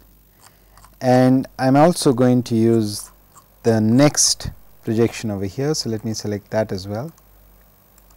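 A man lectures calmly, heard close through a microphone.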